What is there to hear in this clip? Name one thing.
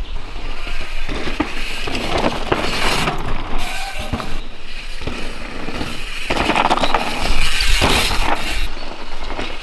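Mountain bike tyres crunch and skid over a dirt trail.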